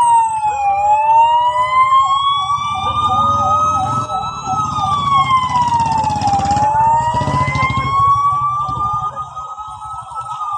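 Car engines rumble as vehicles drive past slowly.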